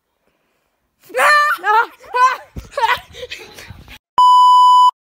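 A young girl laughs and shrieks close by.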